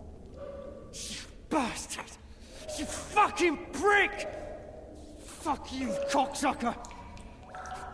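A man shouts angrily from behind a door.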